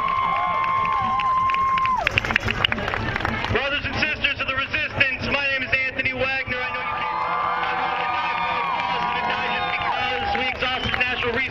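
A large crowd outdoors chants and shouts loudly.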